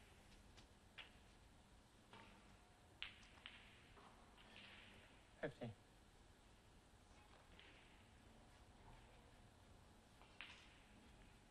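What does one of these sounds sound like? A snooker cue strikes a ball with a sharp click.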